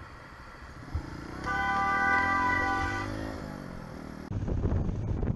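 A motorcycle engine revs up as the bike pulls away.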